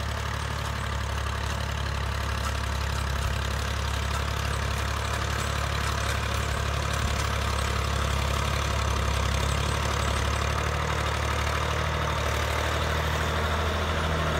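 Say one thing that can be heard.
A harvester engine rumbles steadily nearby.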